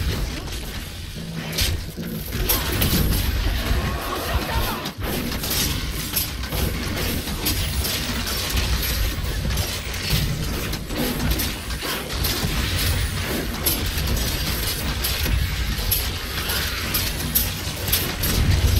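Spell blasts and explosions crackle and boom in quick succession.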